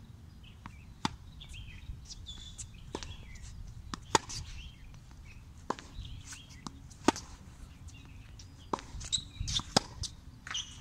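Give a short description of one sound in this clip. A tennis racket strikes a ball with sharp pops outdoors.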